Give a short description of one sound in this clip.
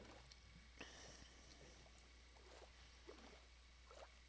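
Water splashes softly as a swimmer moves through it.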